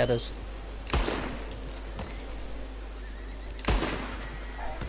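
Rifle shots crack loudly, twice.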